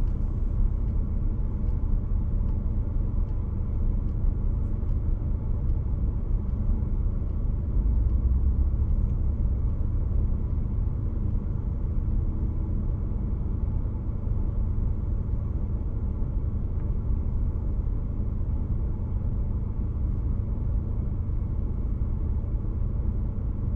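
A car engine idles with a low steady rumble, heard from inside the car.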